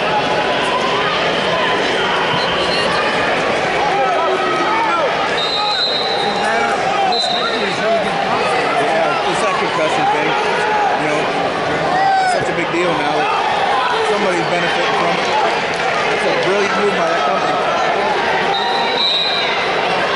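A large crowd murmurs and shouts in a big echoing hall.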